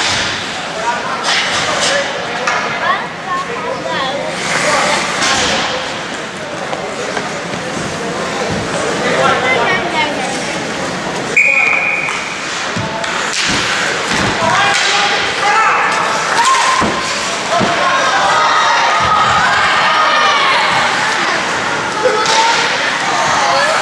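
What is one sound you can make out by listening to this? Young players shout and call out across an echoing rink.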